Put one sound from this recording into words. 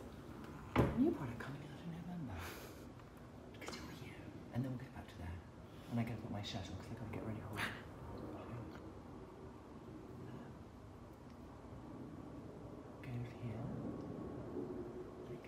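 A woman speaks calmly and close by, as if into a microphone.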